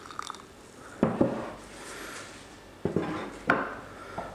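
Glass clinks against glass as a coffee pot is set down.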